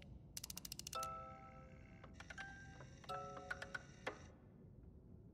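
A music box chimes a few brief, bright notes.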